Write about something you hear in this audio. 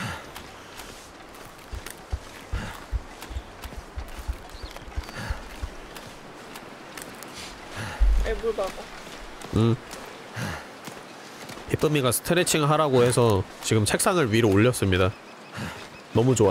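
Footsteps crunch on snow and ice.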